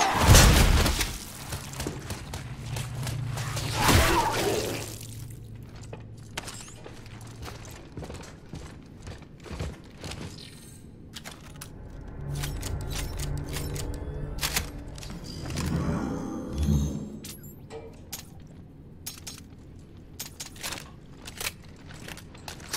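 Heavy boots clank on a hard floor.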